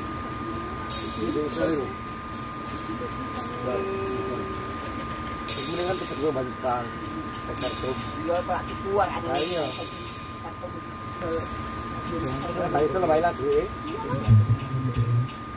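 A man's voice booms through loudspeakers, speaking in short bursts.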